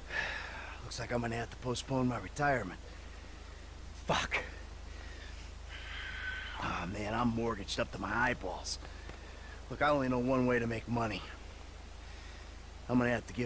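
A second man answers wearily, close by.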